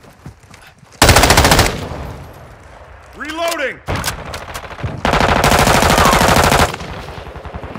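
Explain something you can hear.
A rifle fires rapid, loud bursts.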